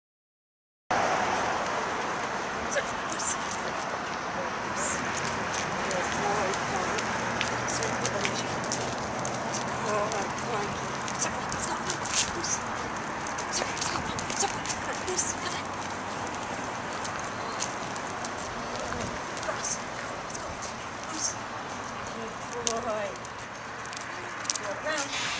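A young woman gives short commands to a dog.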